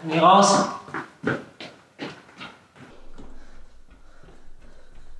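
Running footsteps echo along a hard corridor.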